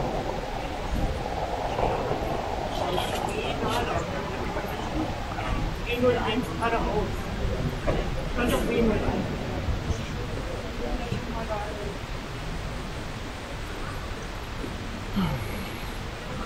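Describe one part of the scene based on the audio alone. Voices of a crowd of passersby murmur in a large echoing hall.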